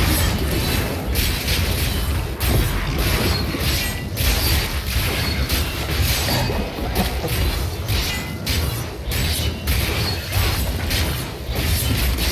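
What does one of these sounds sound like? Weapons slash and thud against monsters in fast, busy combat.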